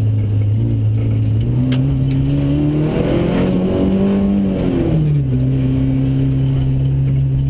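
A car engine roars loudly from inside the car, revving up and down.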